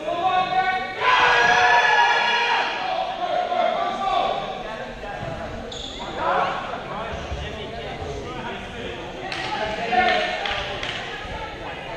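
A young man talks nearby in a large echoing hall.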